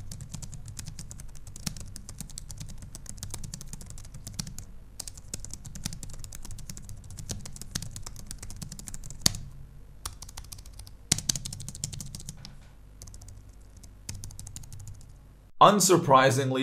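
Fingers tap quickly on keyboard keys, clicking close by.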